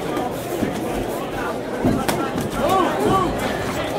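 Gloves thud against a body in sharp blows.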